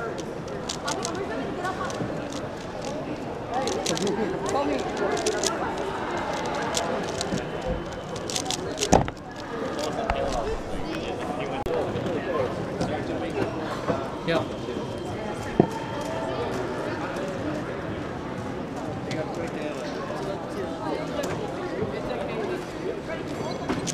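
Plastic puzzle pieces click and rattle rapidly as they are turned by hand.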